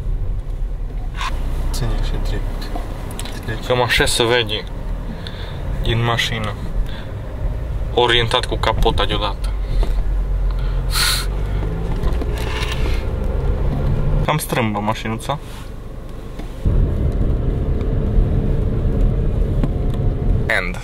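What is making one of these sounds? A car engine rumbles steadily as the car drives.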